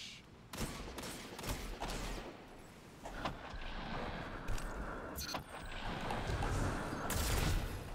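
A young woman talks into a microphone.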